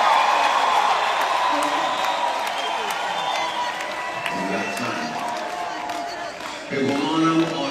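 A large crowd cheers and screams in a big echoing hall.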